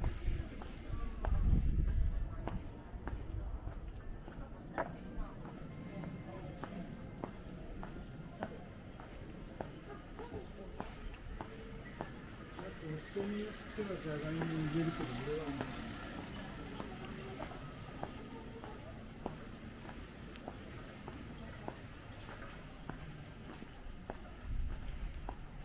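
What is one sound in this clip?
Footsteps walk steadily on a paved street.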